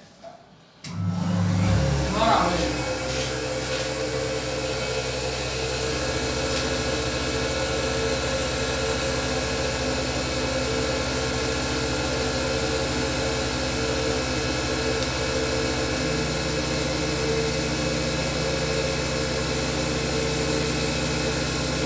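A milling machine runs with a steady mechanical hum and whine.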